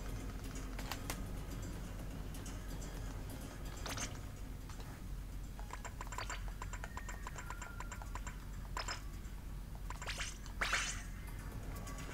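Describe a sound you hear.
Video game menu sounds blip and chime.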